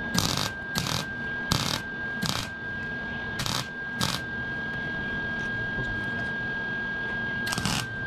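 A welder crackles and sizzles in short bursts.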